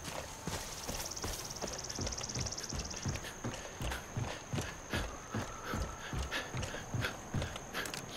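Footsteps thud on wooden planks at a steady walking pace.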